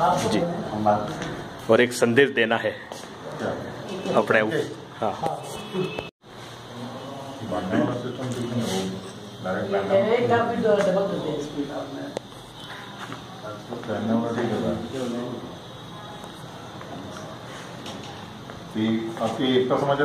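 Several men talk with animation nearby.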